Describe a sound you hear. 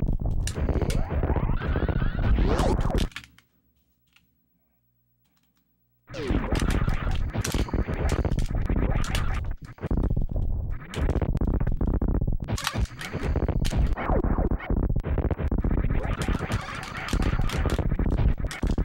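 Video game blasts and explosions crackle rapidly.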